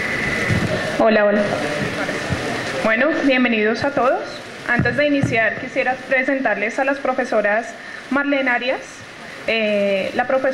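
A young woman speaks calmly into a microphone over loudspeakers.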